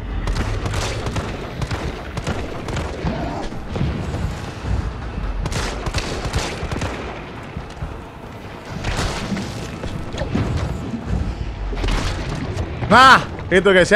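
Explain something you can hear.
Gunshots bang loudly.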